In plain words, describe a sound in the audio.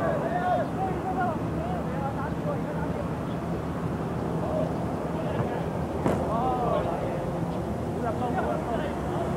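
Wind blows steadily across an open field.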